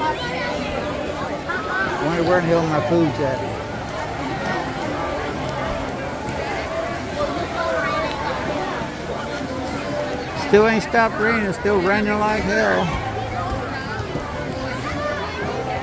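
A crowd of adults and children chatters and calls out outdoors.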